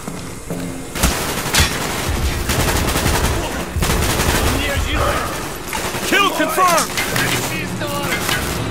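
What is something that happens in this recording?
Gunfire rattles and bangs in rapid bursts.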